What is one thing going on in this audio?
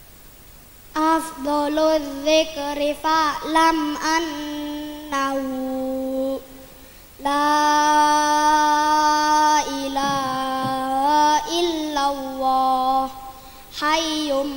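A group of children chant together in unison.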